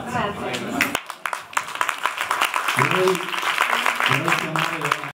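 A crowd applauds and cheers in a room.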